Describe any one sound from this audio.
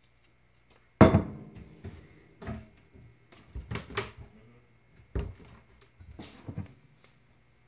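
Cupboard doors bang and clatter close by.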